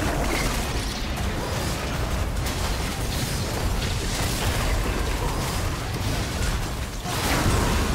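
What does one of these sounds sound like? Magic blasts and hits crackle and boom in a fast fight.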